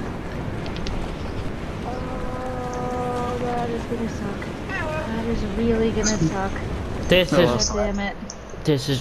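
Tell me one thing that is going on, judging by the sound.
Wind rushes steadily past a falling figure.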